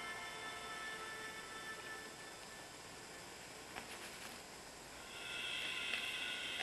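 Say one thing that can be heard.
A pen tool taps lightly on a plastic sheet.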